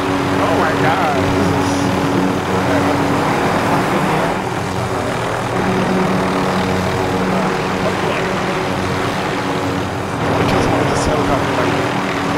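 A helicopter's rotor thumps and its engine drones steadily overhead.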